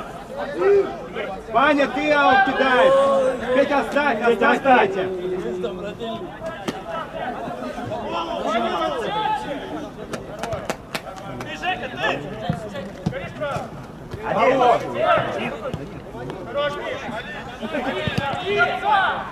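Men shout to each other across an outdoor pitch.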